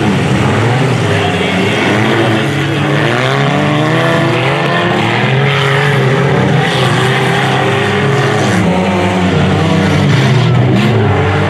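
Loud car engines roar and rev throughout.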